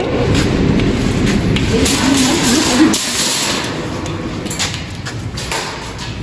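Metal shopping carts rattle and clank close by.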